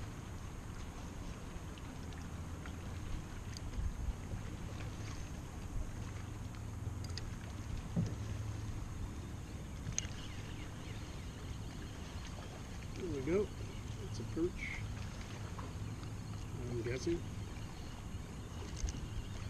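A fishing reel clicks as it is wound in.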